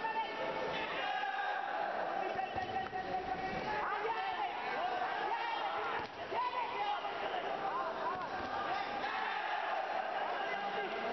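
A large crowd cheers and shouts steadily in an echoing hall.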